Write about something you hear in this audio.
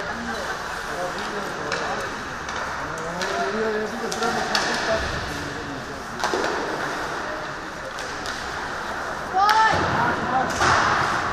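Players shout to each other across the rink.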